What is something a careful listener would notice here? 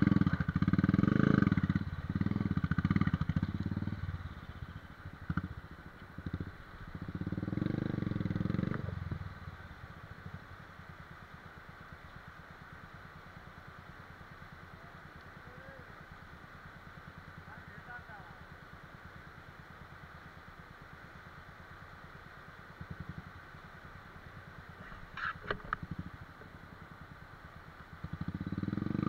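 A motorcycle engine revs loudly in bursts.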